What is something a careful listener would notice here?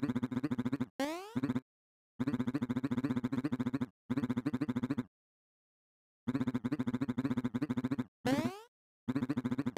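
Short rising electronic swooshes play.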